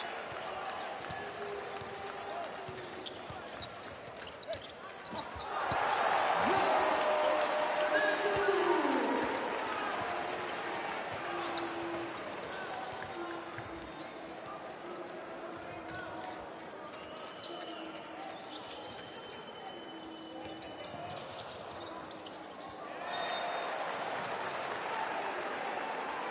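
A crowd in a large echoing arena cheers loudly.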